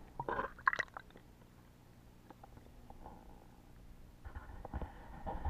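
Muffled bubbling and knocks sound underwater.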